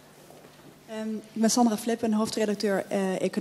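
A woman speaks into a handheld microphone.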